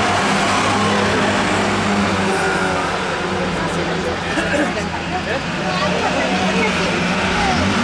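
Small racing car engines roar and drone steadily around a track.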